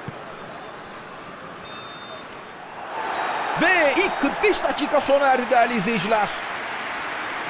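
A large crowd murmurs and cheers in a stadium.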